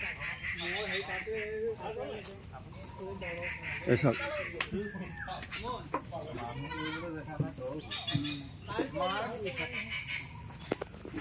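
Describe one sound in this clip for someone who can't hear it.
Several men talk and call out nearby with animation.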